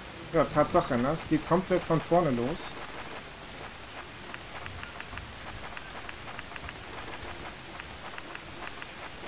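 Paper pages of a notebook flip over one after another.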